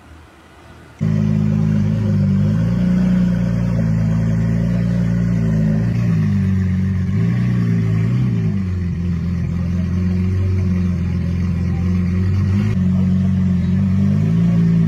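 A sports car engine idles with a deep rumble.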